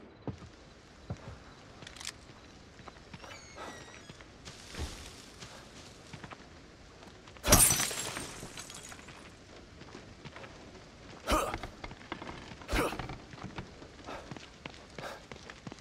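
Footsteps rustle through grass and splash on wet ground.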